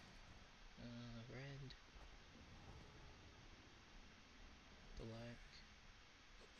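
A man murmurs briefly into a headset microphone, close by.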